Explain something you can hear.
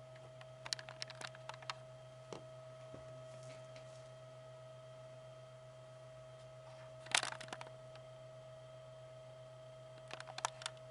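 Buttons on a slot machine click sharply several times.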